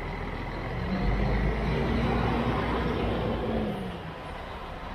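A bus engine roars louder as the bus pulls away.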